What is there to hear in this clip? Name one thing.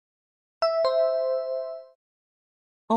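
A bright two-note chime rings out and fades.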